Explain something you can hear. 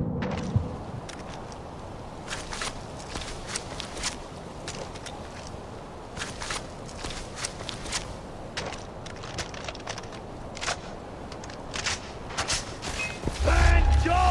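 Footsteps rustle through grass and leaves.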